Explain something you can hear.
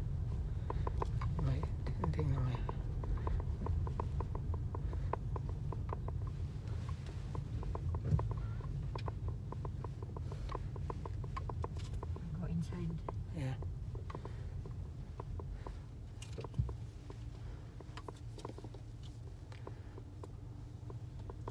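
A car engine hums low and steady inside a moving car.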